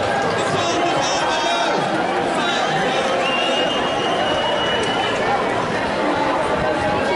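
A large crowd of men and women chatters and shouts outdoors.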